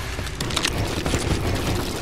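Wooden panels clatter into place during building.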